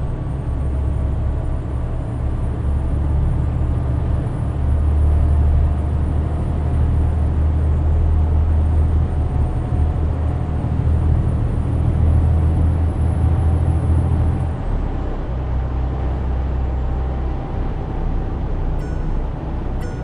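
A truck engine drones steadily while driving on a highway.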